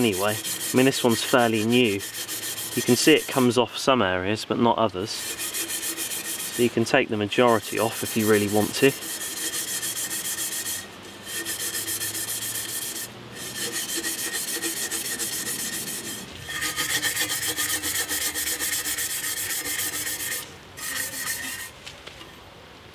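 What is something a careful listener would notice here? A tool scrapes and rasps inside a metal bottle.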